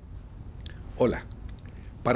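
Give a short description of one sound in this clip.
An older man speaks with animation into a microphone.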